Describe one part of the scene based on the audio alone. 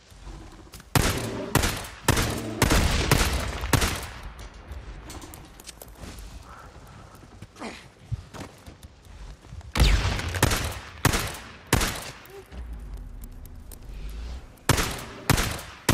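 A pistol fires several sharp, loud shots.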